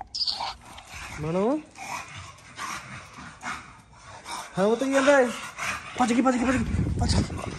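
A dog whines in rising and falling tones.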